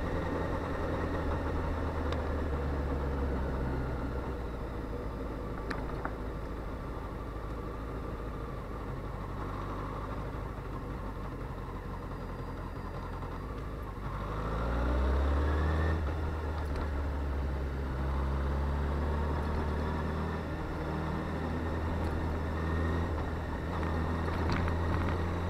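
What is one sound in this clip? An inline-four sport bike cruises along a road.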